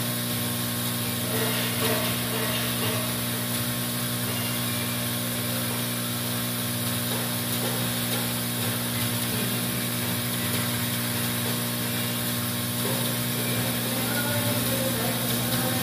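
A vibratory bowl feeder hums steadily with a low mechanical buzz.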